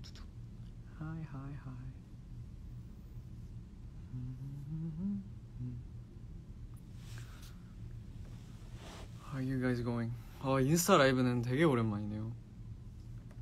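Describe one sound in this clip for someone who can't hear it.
A young man speaks softly and casually into a phone microphone, close by.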